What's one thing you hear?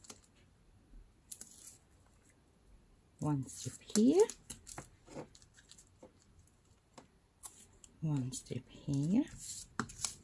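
Sticky tape rips as it is pulled off a roll.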